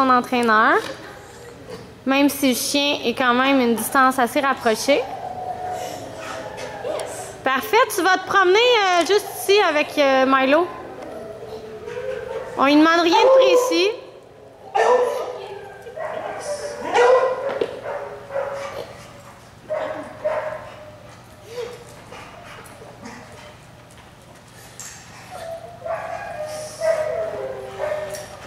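A woman speaks to a dog nearby in a high, sing-song voice.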